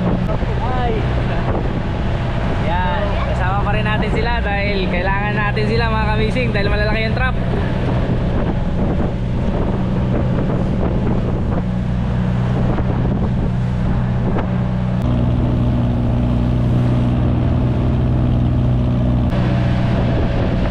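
A boat engine drones steadily throughout.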